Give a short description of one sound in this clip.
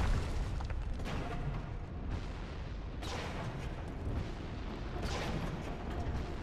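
A sword swishes through the air in heavy swings.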